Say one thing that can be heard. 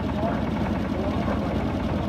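Water splashes into a turning mixer drum.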